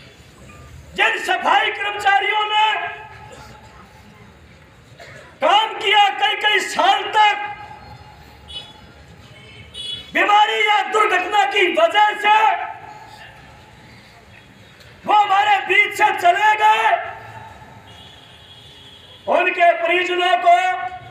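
A man shouts slogans loudly through a handheld loudspeaker, in bursts with pauses between them.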